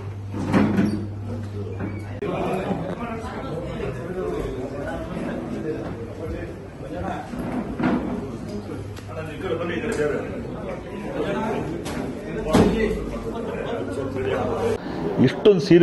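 Many men and women chatter in a busy room.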